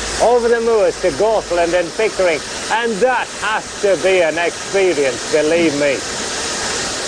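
A man speaks calmly and clearly.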